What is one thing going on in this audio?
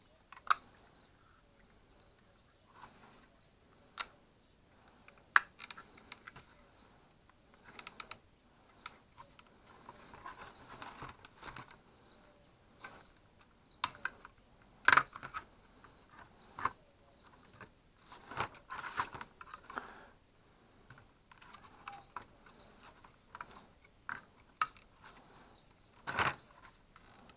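Plastic parts of a small device casing clack and knock as they are handled.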